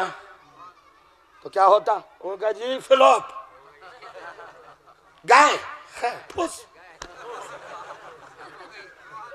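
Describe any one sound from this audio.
A man speaks passionately into a microphone, his voice rising in loud bursts.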